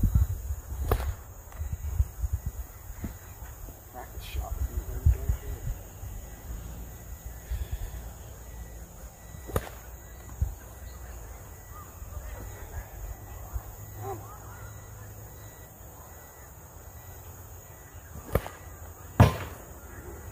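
A thrown object knocks against a wooden target in the distance.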